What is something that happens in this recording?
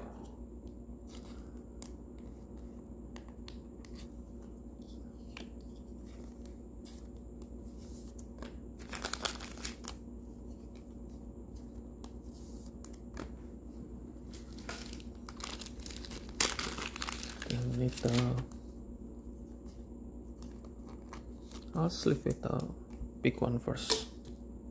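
Plastic sleeves crinkle and rustle as cards are handled.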